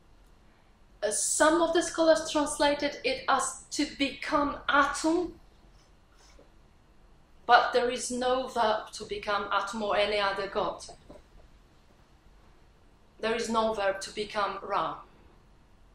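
A woman speaks calmly and clearly into a microphone, with pauses between phrases.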